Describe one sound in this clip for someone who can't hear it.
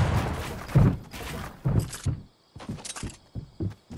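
Footsteps run over grass in a video game.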